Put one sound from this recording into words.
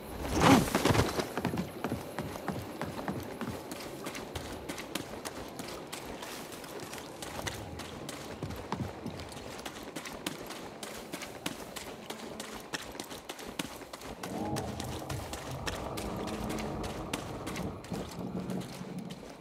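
Quick footsteps run over the ground and wooden planks.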